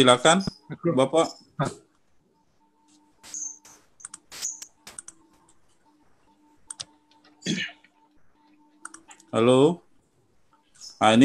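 A middle-aged man speaks calmly over an online call, with pauses.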